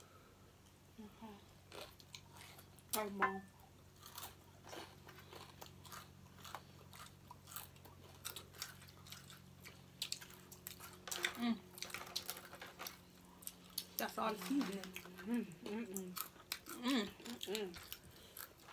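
Crinkly food and foil rustle as hands pick through it.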